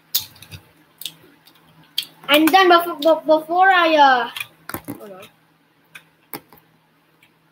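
Plastic toy bricks click softly together.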